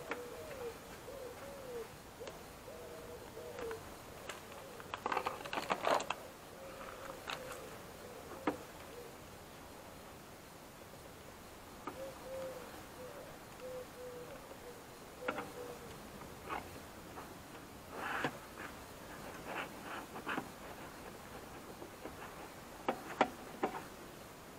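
Plastic parts click and rattle.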